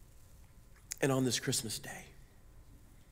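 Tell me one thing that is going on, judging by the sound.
A middle-aged man speaks briefly into a microphone in an echoing hall.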